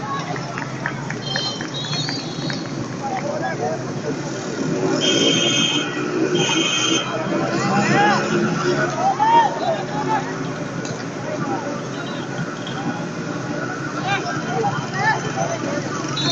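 Distant men shout to each other across an open field.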